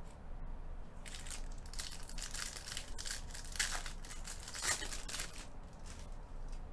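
A foil card pack crinkles as hands open it.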